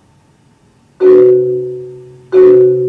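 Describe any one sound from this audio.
A marimba is struck hard with mallets, ringing loudly.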